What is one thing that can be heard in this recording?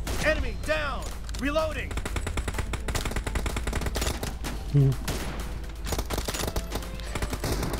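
A rifle fires in rapid bursts of gunshots.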